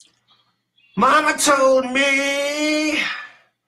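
A young man sings loudly, close to the microphone.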